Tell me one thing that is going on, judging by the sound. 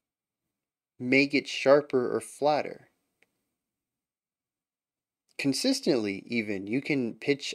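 A man speaks calmly and expressively into a close microphone.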